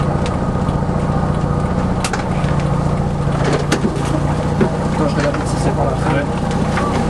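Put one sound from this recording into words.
A car engine idles with a steady low hum, heard from inside the car.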